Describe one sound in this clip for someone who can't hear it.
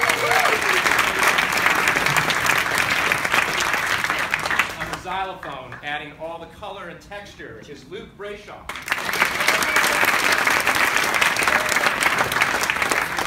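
An audience claps and applauds in a large hall.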